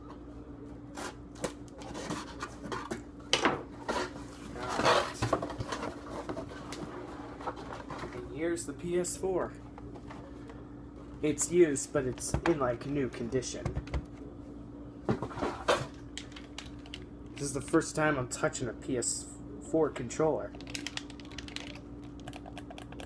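Hard plastic clatters and clicks as it is handled.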